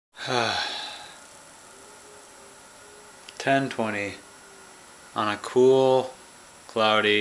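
A young man speaks close to the microphone in short, drawn-out bursts.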